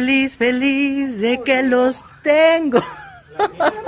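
A young man sings in a high, wavering voice close up.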